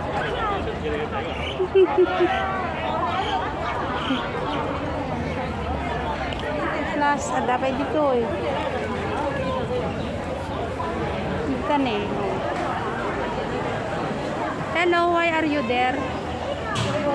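Several people talk all around outdoors.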